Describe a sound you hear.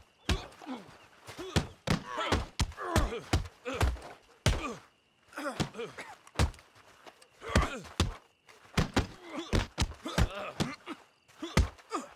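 A man grunts and groans with effort and pain.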